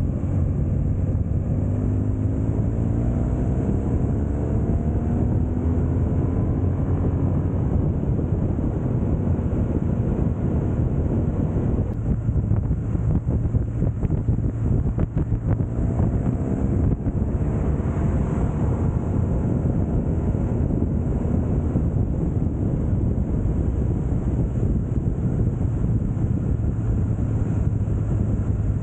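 A motorcycle engine hums and revs up through the gears.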